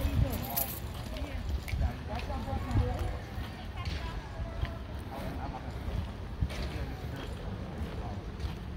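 Stroller wheels roll over asphalt.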